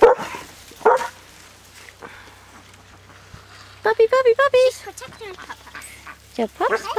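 Puppies rustle through dry grass.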